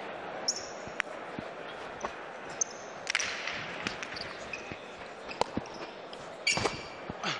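A hard ball smacks sharply against a wall and bats, echoing in a large hall.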